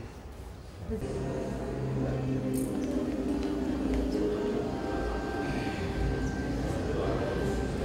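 A crowd of men and women chat nearby, filling a room with murmur.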